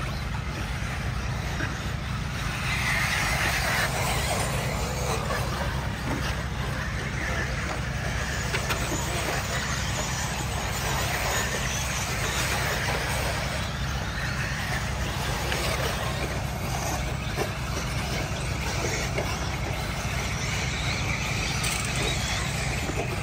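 Tyres of model cars scrabble and crunch on loose dirt.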